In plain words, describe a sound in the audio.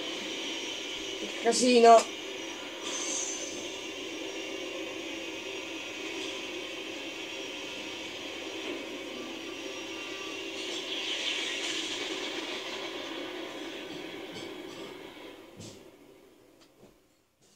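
Airship engines drone steadily through a television speaker, then fade away.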